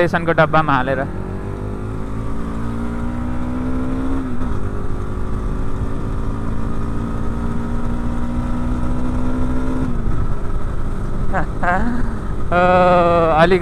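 A motorcycle engine hums close by, rising and falling in pitch as it speeds up.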